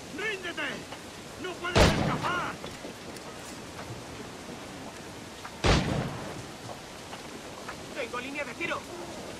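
Ropes creak as someone climbs ship rigging.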